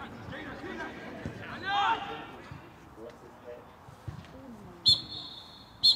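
Players shout from across a field.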